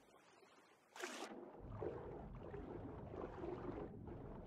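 Bubbles rush and fizz underwater.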